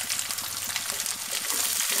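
A wooden spatula scrapes across a pan.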